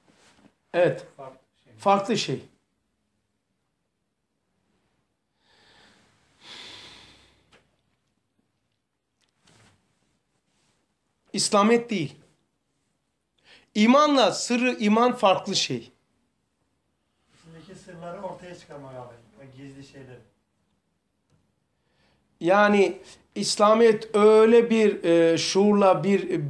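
An elderly man speaks calmly and slowly, close to a microphone, with long pauses.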